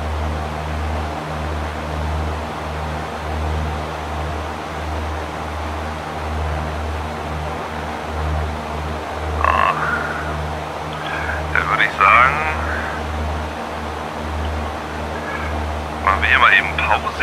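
A small propeller plane's engine drones steadily.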